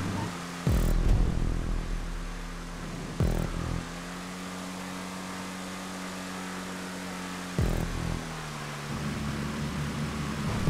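A racing car engine drones steadily at high speed, with sudden jumps as it shifts gear.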